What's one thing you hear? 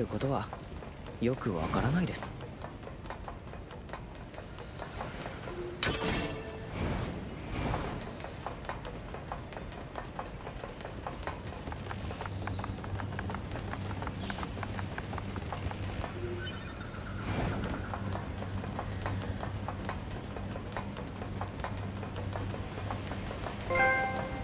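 Footsteps run across wooden planks.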